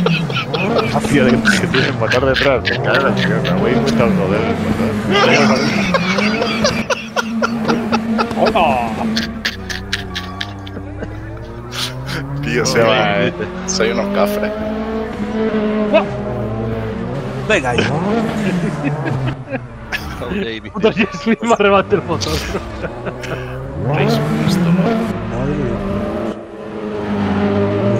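Tyres screech on asphalt.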